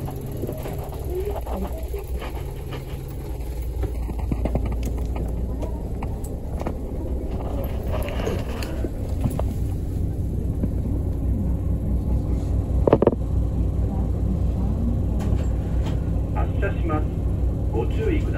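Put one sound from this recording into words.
A bus rattles and creaks as it moves.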